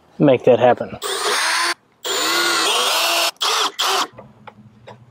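A cordless drill whirs as it drives in screws.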